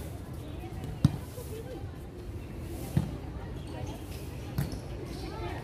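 A volleyball is struck by hand outdoors.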